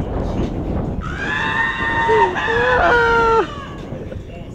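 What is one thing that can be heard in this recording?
A young man yells and laughs loudly nearby.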